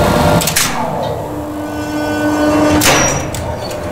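Electrical relays click sharply.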